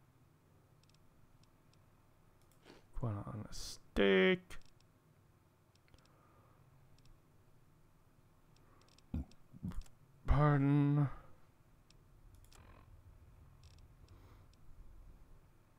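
Soft electronic clicks tick as a menu scrolls.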